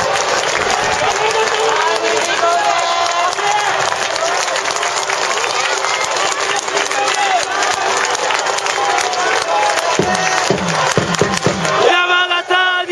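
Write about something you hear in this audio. Fans clap their hands close by.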